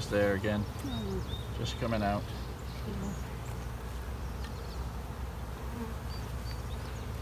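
Bees buzz steadily and close by.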